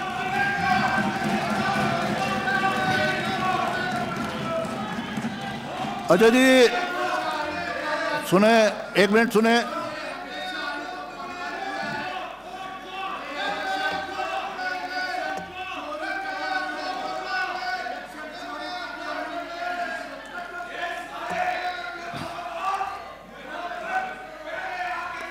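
A man speaks into a microphone with animation, heard over loudspeakers in a large hall.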